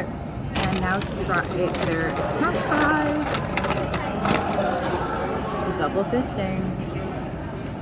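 A paper bag rustles.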